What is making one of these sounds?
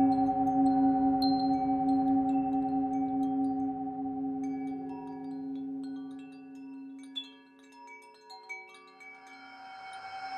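A metal singing bowl rings with a deep, humming tone that slowly fades.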